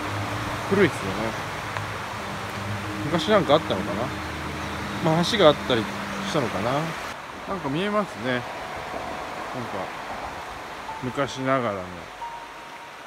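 A mountain stream rushes steadily below.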